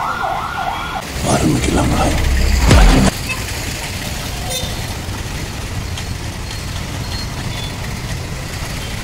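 Motorbikes and cars rumble past on a busy street.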